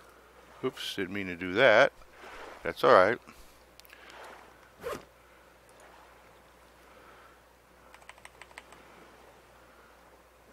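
Small waves lap gently on a shore.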